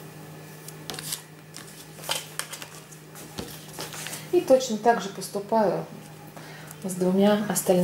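Paper seed packets rustle and crinkle as they are handled.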